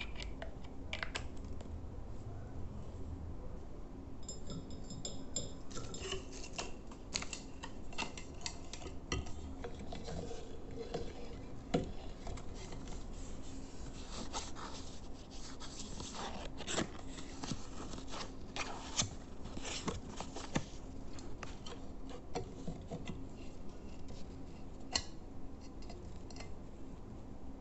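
Brush handles clink and tap against a glass surface close by.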